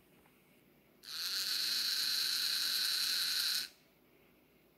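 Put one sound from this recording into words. A small electric motor spins with a steady high whine, then stops.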